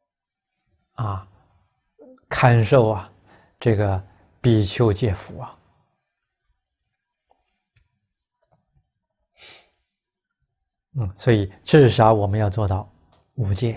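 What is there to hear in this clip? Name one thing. A middle-aged man speaks calmly and slowly into a close microphone, pausing between phrases.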